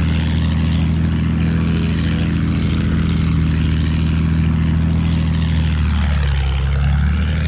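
A propeller plane engine drones steadily and loudly.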